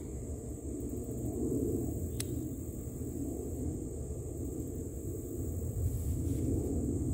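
Leaves rustle as plant stems are handled.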